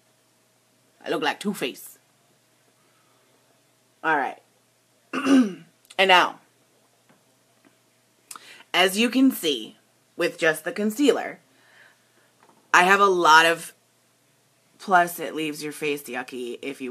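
A woman talks calmly in short bursts, close by.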